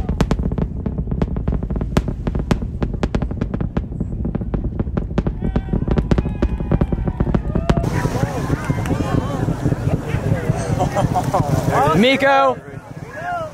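A distant rocket roars with a deep crackling rumble.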